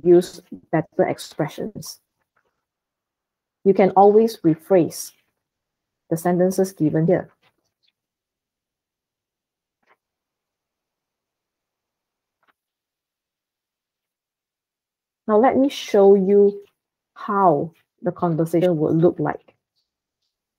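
A woman speaks calmly through an online call, pausing between phrases.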